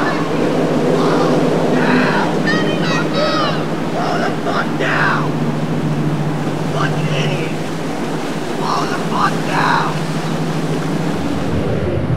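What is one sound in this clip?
A boat engine roars steadily nearby.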